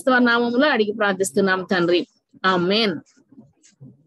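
A woman sings a prayer through an online call.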